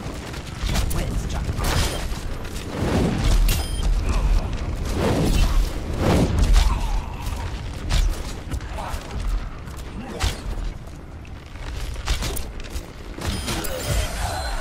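A bow twangs as arrows are loosed.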